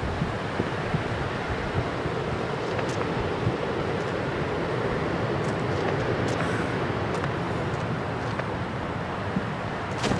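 Quick footsteps thud as a runner dashes along a hard surface.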